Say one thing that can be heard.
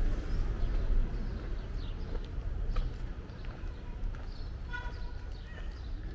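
A motor scooter idles nearby.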